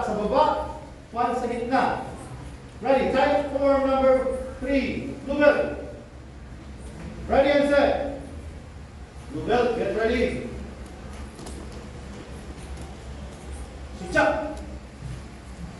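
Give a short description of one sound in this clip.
A young man shouts short commands loudly.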